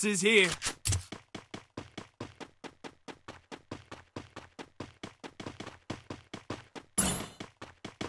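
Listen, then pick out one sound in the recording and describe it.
Footsteps run at a steady pace.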